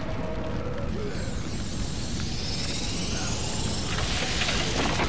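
An icy magic blast whooshes and swells loudly.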